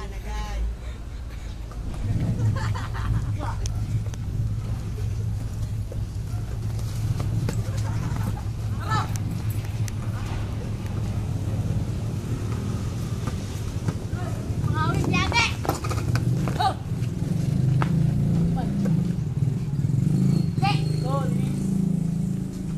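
Men shout and laugh loudly outdoors.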